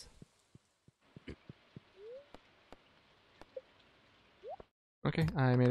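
Soft menu clicks and short blips sound as options are picked.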